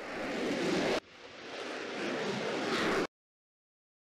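A rocket roars as it lifts off.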